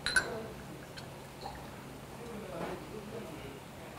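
Liquid pours and gurgles into a small glass.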